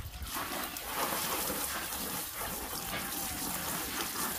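Leaves rustle as gloved hands toss lettuce.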